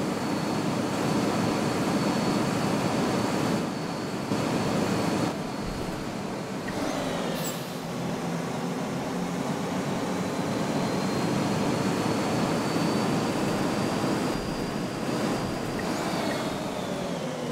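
A bus engine hums and rumbles steadily as the bus drives along.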